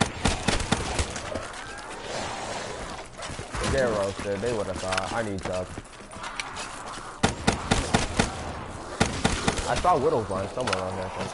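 Rapid gunshots crack and bang in quick bursts.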